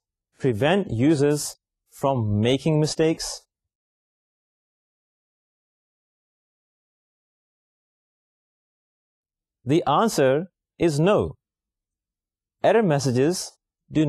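A man speaks calmly and clearly into a microphone, with pauses.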